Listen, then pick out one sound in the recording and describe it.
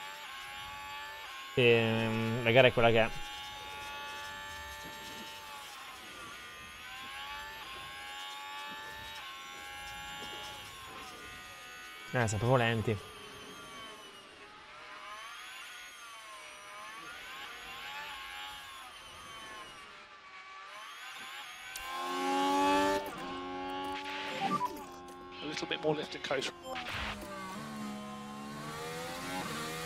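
A racing car engine whines and shifts pitch steadily as it speeds along.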